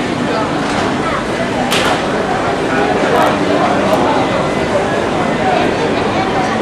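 Many voices chatter in a busy, echoing space.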